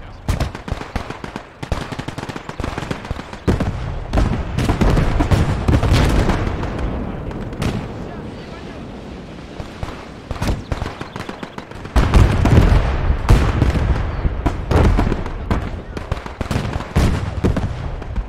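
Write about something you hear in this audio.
Explosions boom and rumble again and again.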